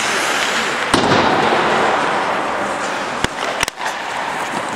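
A hockey stick smacks a puck.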